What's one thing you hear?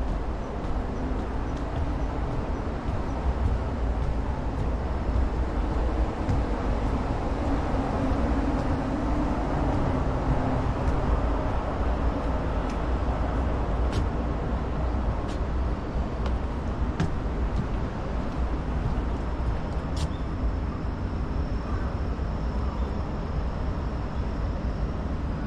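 Wind blows steadily outdoors, rumbling against the microphone.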